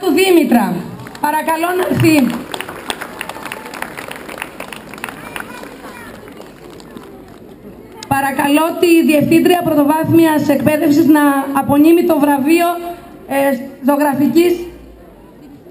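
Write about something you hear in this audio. A woman sings into a microphone, heard through loudspeakers outdoors.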